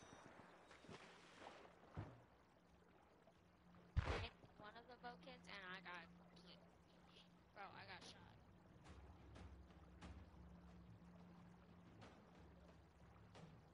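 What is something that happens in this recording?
Water gurgles and rumbles underwater, muffled.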